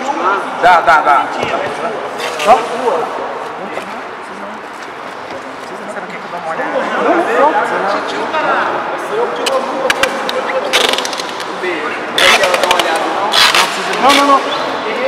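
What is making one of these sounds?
Men and women talk and call out nearby in a large echoing hall.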